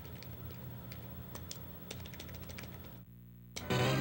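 A soft electronic game tune plays and then stops.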